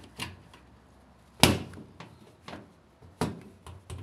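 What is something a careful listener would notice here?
A plastic hose knocks and rustles against a metal panel as it is handled.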